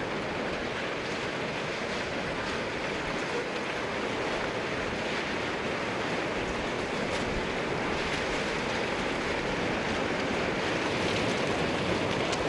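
Debris crashes and cracks in the flood.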